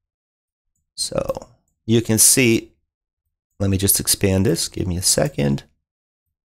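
A young man speaks calmly and close into a headset microphone.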